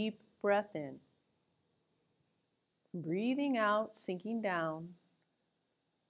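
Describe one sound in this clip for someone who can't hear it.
A woman speaks calmly and clearly close by, in short phrases.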